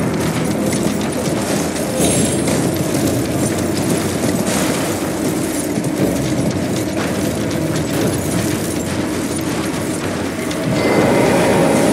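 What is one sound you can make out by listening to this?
A horse's hooves gallop steadily.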